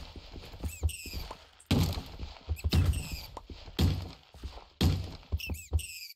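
A sword strikes small creatures with short thuds.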